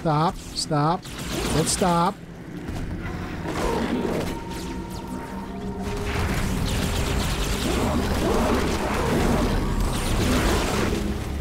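A plasma gun fires in crackling bursts.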